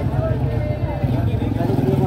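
A motorbike engine idles close by.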